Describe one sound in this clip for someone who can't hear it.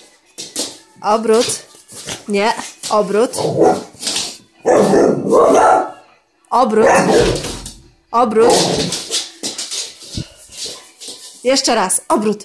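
A dog whines in high-pitched bursts.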